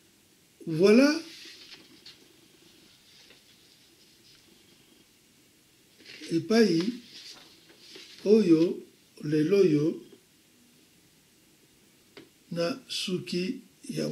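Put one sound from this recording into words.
An elderly man speaks calmly and slowly, close by, with long pauses.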